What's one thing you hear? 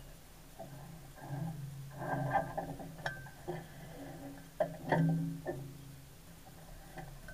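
Men call out to each other outdoors at a distance.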